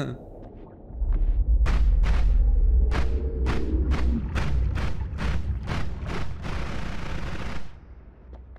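A magic beam fires with a steady crackling hiss.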